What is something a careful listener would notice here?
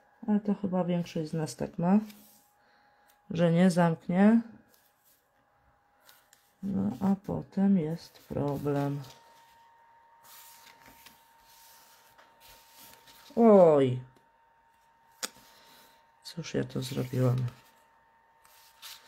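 Hands rub and smooth a sheet of card on a table, rustling softly.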